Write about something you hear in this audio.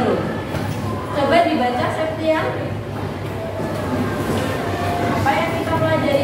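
A woman speaks calmly and clearly in an echoing room.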